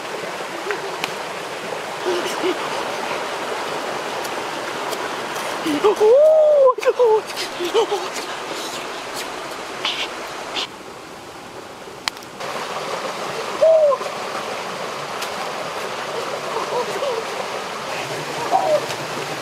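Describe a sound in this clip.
Water rushes steadily over rocks.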